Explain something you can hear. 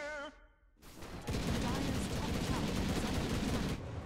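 Game fighters clash in battle.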